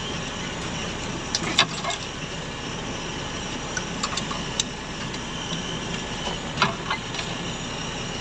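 Branches scrape and snap against a vehicle.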